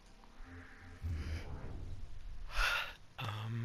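A deep whoosh rushes past.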